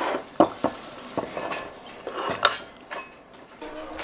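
Chopped onion slides off a wooden board into a bowl.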